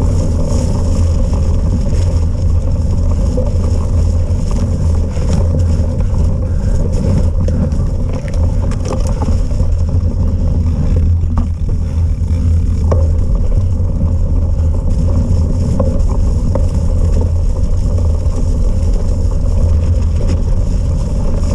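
Wind buffets the microphone steadily.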